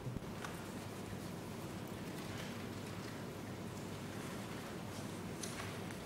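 An elderly woman speaks calmly into a microphone in a large room.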